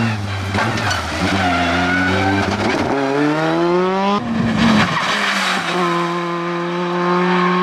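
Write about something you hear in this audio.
A rally car engine roars loudly and revs up through the gears.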